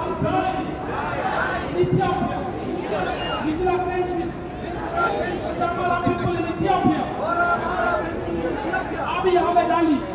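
A crowd of marchers chants loudly in unison outdoors.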